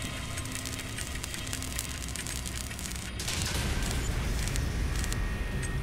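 An electric welding beam buzzes and crackles.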